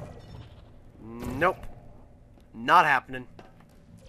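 A futuristic energy gun fires with a warbling electronic zap.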